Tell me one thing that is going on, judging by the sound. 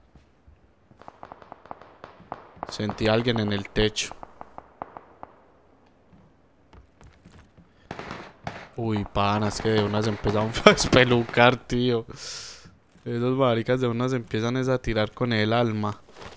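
Soft footsteps shuffle across a wooden floor.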